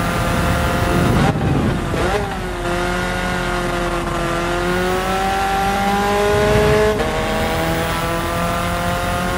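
A car engine roars and revs, its pitch dropping through quick gear changes and then climbing steadily.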